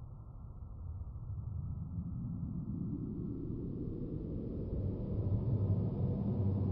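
A deep, muffled underwater rumble grows louder as a huge whale glides past.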